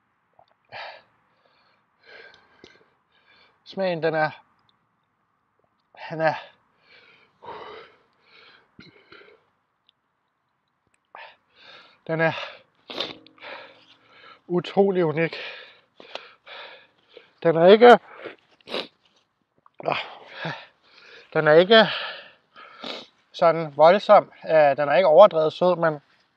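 A young man talks close to a microphone, with animation and strain.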